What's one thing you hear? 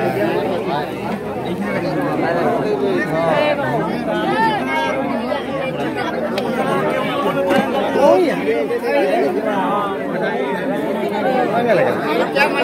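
A crowd of men talks and calls out loudly all around, close by.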